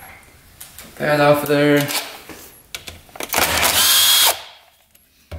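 A cordless power tool whirs, loosening a bolt.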